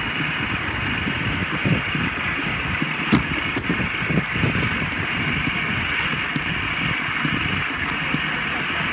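Wind rumbles outdoors in an open field.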